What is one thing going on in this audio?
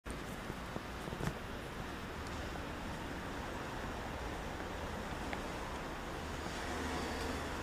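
Footsteps tap on a stone pavement outdoors.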